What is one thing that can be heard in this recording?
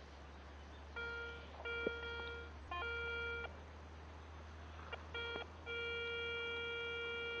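A metal detector beeps with a steady electronic tone that starts and stops.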